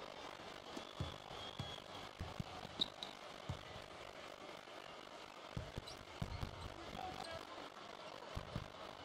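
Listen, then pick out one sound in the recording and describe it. A basketball bounces on a hardwood floor in steady dribbles.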